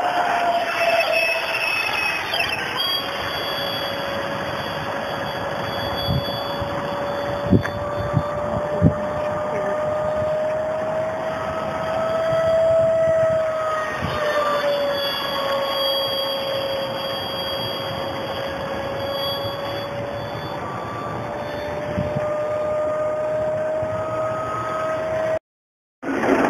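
A model airplane engine whines high overhead, its pitch slowly rising and falling.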